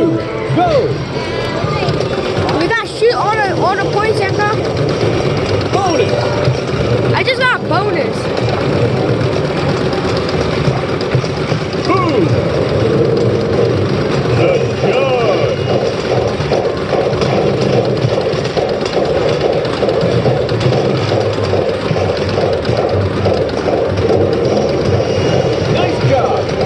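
An arcade game plays loud music and sound effects.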